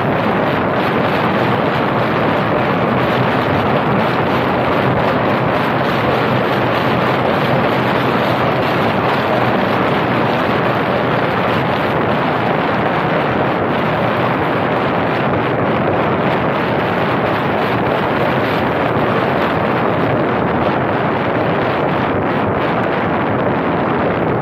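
Wind rushes and buffets over the roof of a moving car.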